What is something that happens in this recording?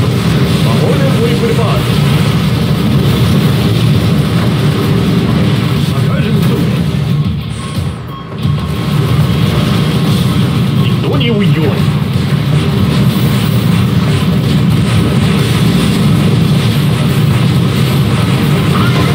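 Explosions boom and rumble as airships are shot down.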